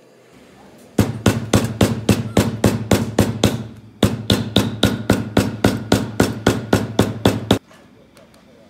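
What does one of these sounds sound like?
A mallet taps rapidly on leather.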